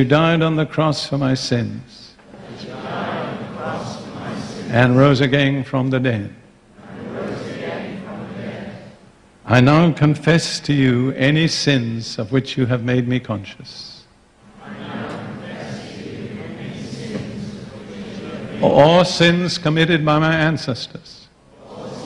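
An elderly man speaks forcefully through a microphone and loudspeakers, in short bursts with pauses.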